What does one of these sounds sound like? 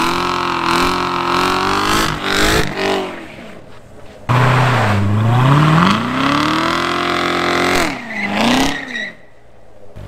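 Tyres screech as they spin on pavement.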